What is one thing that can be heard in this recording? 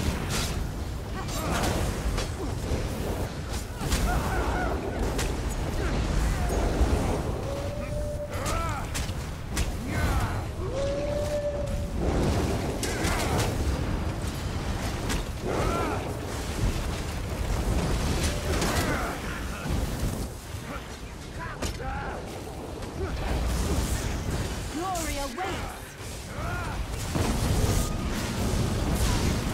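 Spell effects crackle and whoosh during a fight.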